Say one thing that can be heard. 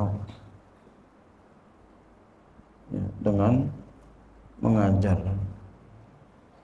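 A man chants slowly into a microphone in a reverberant room.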